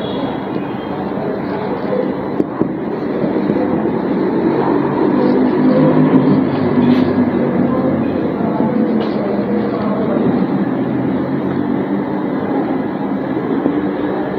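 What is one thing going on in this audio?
A woman speaks calmly, as if explaining, close by.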